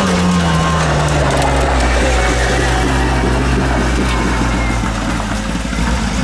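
Tyres crunch and spray over gravel.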